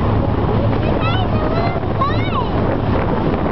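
A young girl calls out in a high voice close by.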